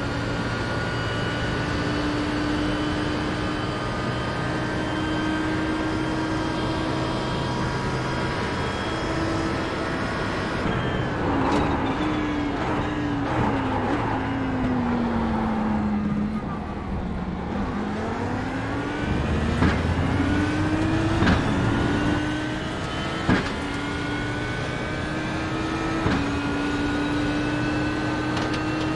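A racing car engine roars at high revs, drops low while braking into a corner, then climbs again.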